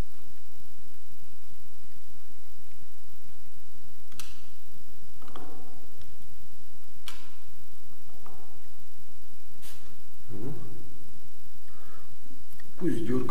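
A screwdriver clicks and scrapes against metal in a wall socket.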